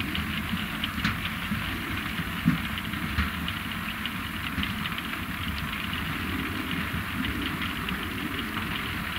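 Beets clatter and thud off a conveyor onto a heap.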